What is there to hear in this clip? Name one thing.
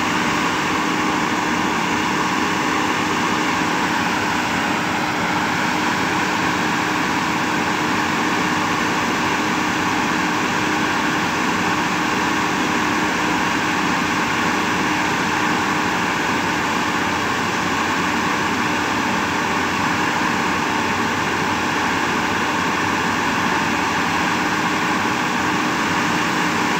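An excavator engine runs with a loud, steady drone.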